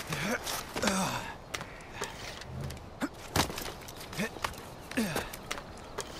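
Hands scrape and scramble over rock.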